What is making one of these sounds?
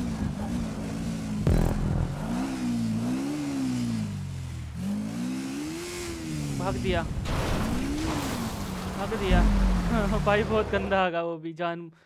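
A motorbike engine revs up and down.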